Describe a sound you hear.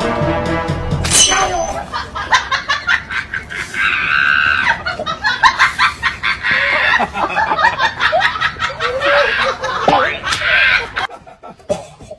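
A man laughs loudly close to a microphone.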